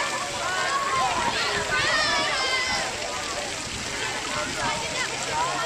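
A crowd of children and adults shout and chatter outdoors by water.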